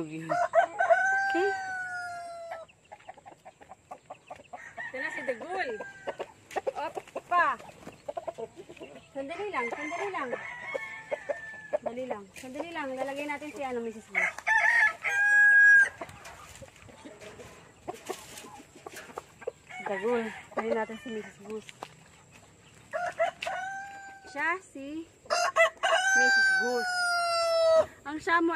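A rooster crows loudly nearby.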